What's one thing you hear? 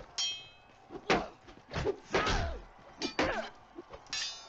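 Weapons clash and thud against shields in a fight.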